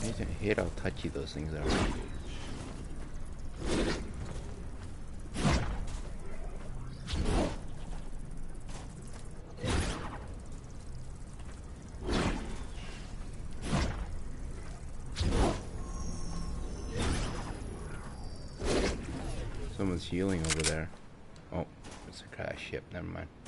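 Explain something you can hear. A man talks calmly close to a microphone.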